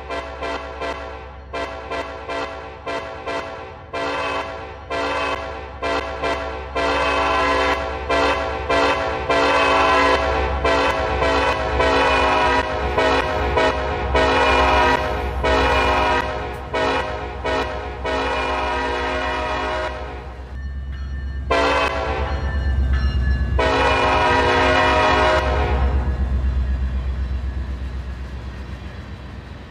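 Diesel locomotives rumble loudly as a train passes close by.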